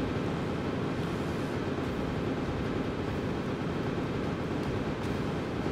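Wind rushes loudly in a steady, roaring stream.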